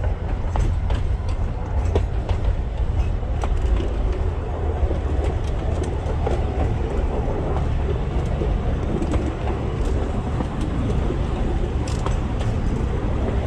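Wheels click and clatter over rail joints.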